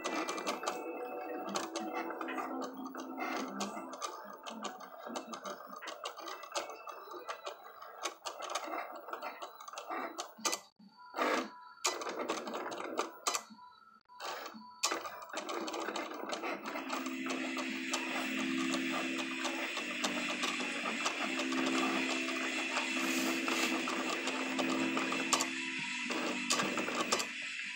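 A cutting machine whirs as its carriage slides back and forth.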